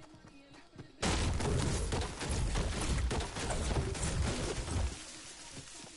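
A pickaxe strikes a tree trunk with repeated hard thwacks.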